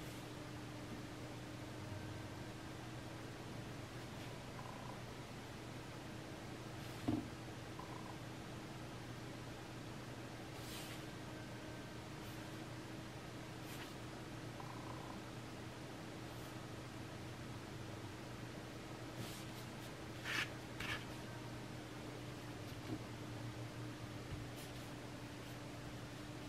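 A brush taps and scratches softly on paper.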